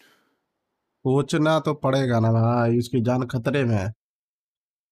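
A man speaks loudly and close by.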